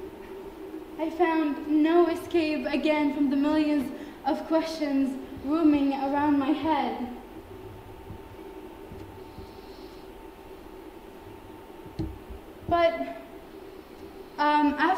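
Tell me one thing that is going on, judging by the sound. A young woman sings nearby, with a few pauses.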